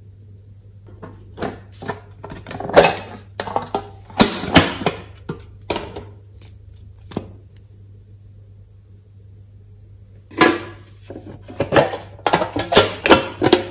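Plastic containers clatter and tap as they are handled.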